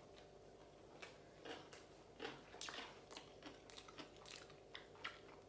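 A young man chews food with soft, wet smacking sounds.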